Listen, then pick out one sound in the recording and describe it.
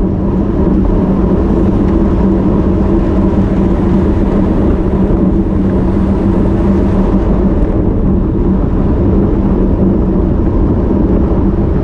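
Wind buffets loudly and steadily past the riders.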